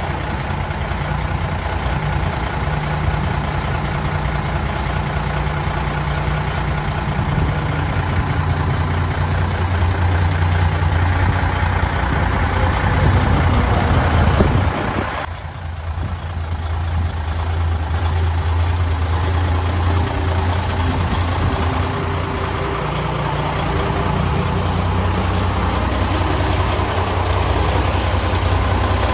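A large truck's diesel engine idles with a deep, steady rumble.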